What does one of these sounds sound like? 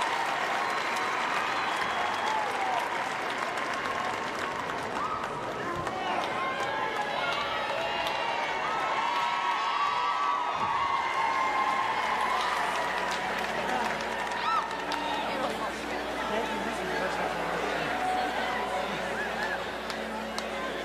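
A large crowd cheers and applauds loudly in a big echoing arena.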